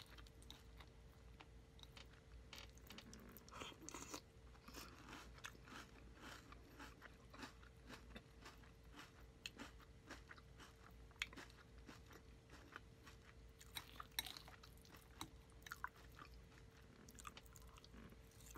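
A woman crunches cereal loudly close to a microphone.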